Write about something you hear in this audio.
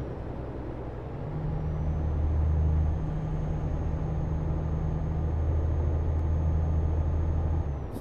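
A truck engine drones steadily with a low hum.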